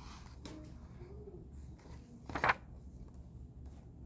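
A paper page turns.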